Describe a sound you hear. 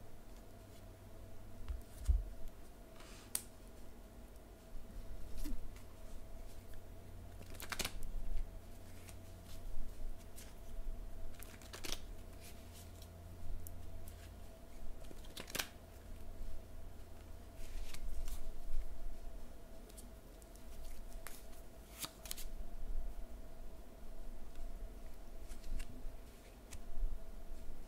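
An older woman speaks calmly and close to a microphone.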